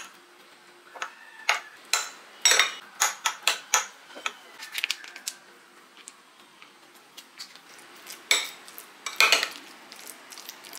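A fork clinks and scrapes against a glass bowl, mashing eggs.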